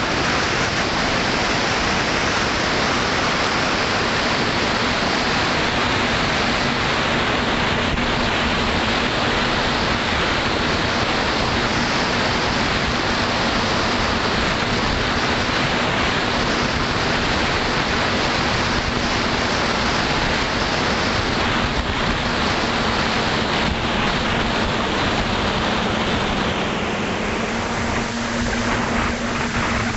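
Strong wind rushes and buffets outdoors.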